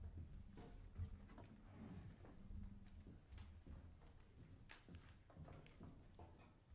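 Footsteps thud on a wooden stage.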